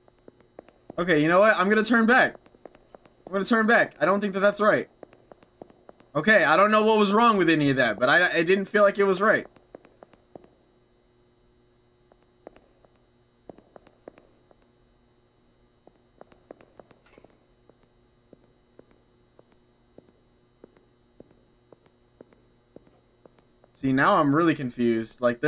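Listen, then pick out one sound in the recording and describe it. A young man talks with animation, close to a headset microphone.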